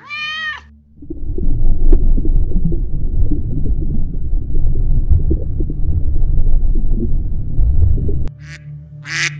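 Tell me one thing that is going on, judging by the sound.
Water rumbles and bubbles underwater.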